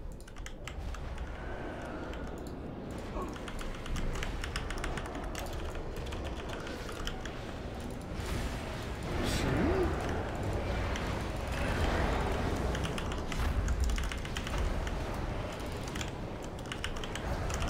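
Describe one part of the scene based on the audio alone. Game spells and combat effects crackle and whoosh.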